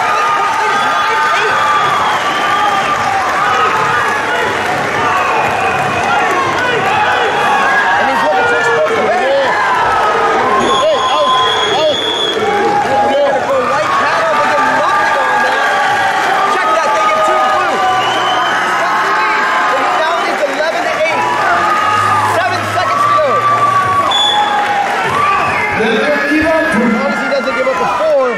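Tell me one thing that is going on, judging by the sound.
A crowd chatters and calls out in a large echoing hall.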